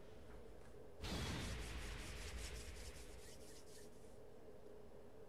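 A loud whoosh sweeps in, followed by a run of quick shimmering hits that fade away.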